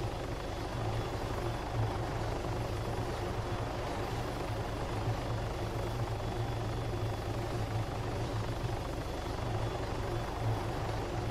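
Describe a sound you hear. A helicopter's rotor thumps steadily and its engine drones.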